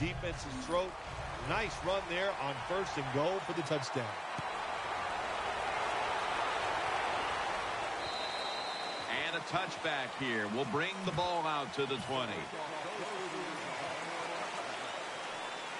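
A large crowd cheers and roars steadily in a stadium.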